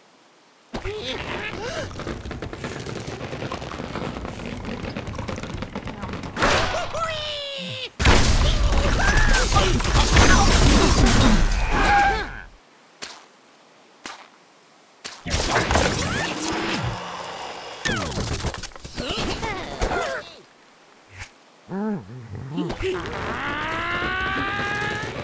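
A slingshot creaks as it stretches.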